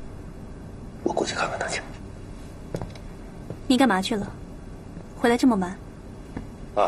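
A young woman asks a question softly.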